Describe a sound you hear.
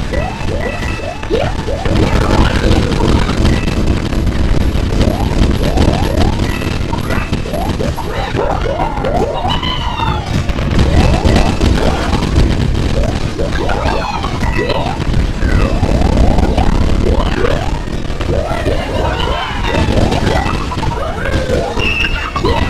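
Cartoonish jump sound effects from a platform video game chirp again and again.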